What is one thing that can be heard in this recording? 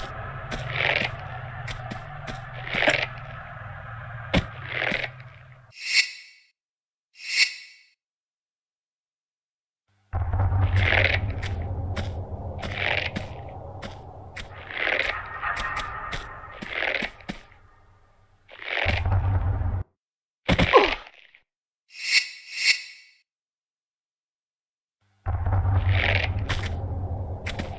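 Footsteps patter on a hard stone floor in an echoing room.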